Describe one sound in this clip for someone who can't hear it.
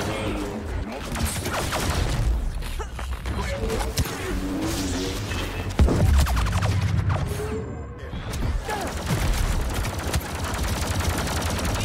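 A lightsaber hums and crackles as it strikes.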